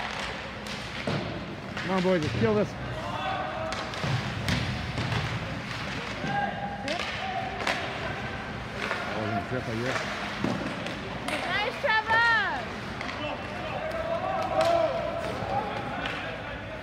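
Young players shout across the ice.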